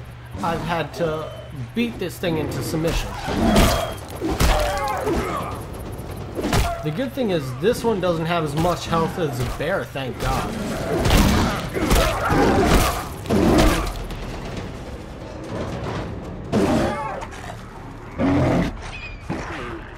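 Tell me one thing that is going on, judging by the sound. Wolves snarl, growl and yelp up close.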